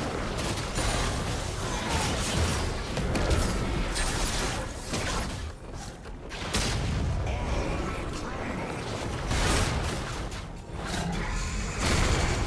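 Game combat effects clash and blast with fiery bursts.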